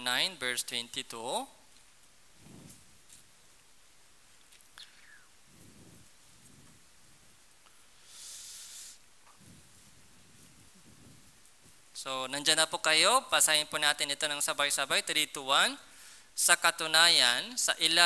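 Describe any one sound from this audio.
A young man speaks clearly into a headset microphone.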